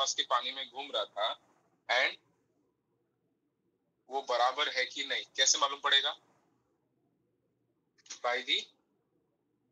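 A man speaks calmly over an online call, heard through a small speaker.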